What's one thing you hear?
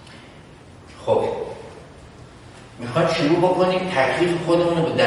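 A middle-aged man speaks calmly and clearly, as if lecturing, in an echoing room.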